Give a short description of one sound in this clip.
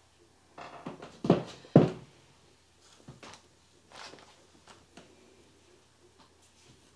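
Fabric rustles as a woman handles clothing.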